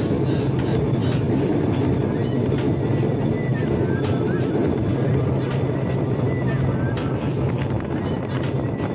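A small rail cart rumbles steadily along a track with a droning motor.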